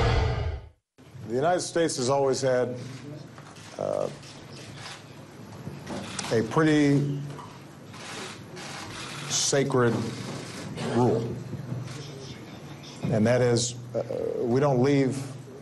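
A man speaks calmly and steadily into a microphone.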